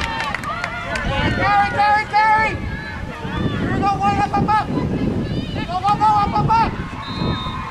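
Young women shout and cheer loudly nearby.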